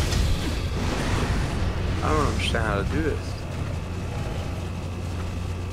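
Flames roar and crackle in a fiery blast.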